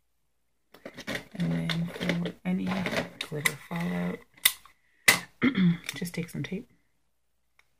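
An adult woman talks calmly and close to the microphone.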